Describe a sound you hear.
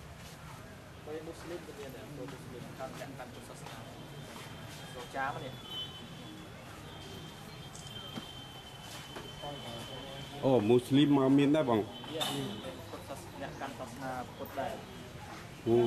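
A man talks nearby in a calm voice.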